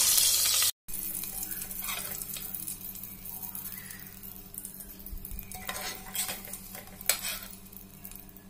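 A metal skimmer scrapes and clinks against a metal pot.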